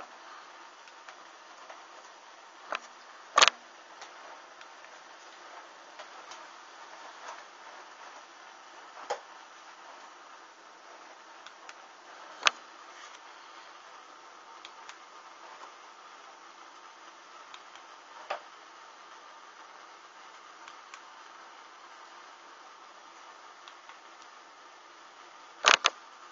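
Small flames crackle and pop softly along the edges of fabric.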